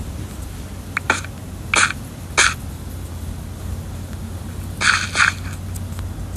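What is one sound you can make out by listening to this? Stone blocks crack and break.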